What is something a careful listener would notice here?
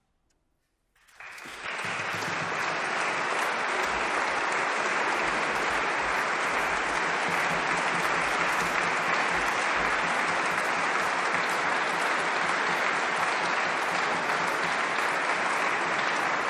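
An audience applauds loudly in a large echoing hall.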